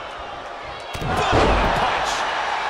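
A body slams hard onto a table with a loud crash.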